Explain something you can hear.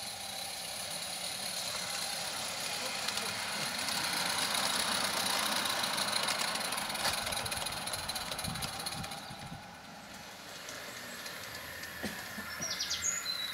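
A model steam train chuffs and rattles along the track, rising as it nears and then fading.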